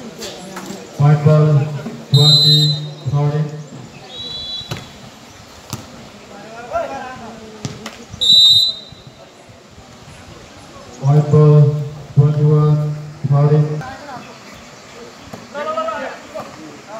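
Young men shout loudly outdoors.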